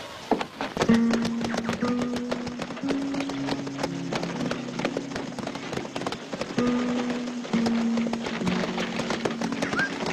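A wagon rolls along.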